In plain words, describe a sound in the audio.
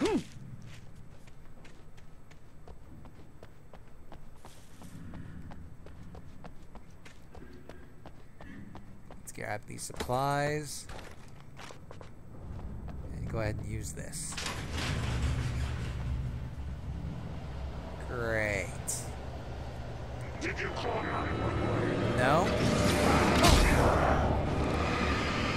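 Footsteps run on hard ground.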